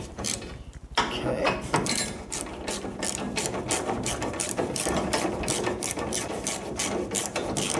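A ratchet clicks quickly as it turns a bolt.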